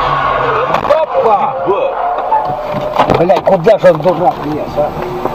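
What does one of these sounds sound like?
A car skids off the road and crashes onto the dirt verge.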